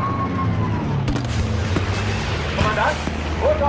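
Smoke grenades hiss as red smoke pours out.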